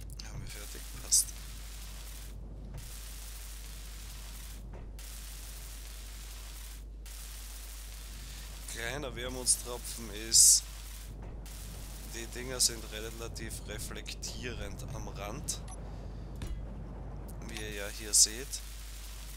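A welding torch hisses and crackles in short bursts.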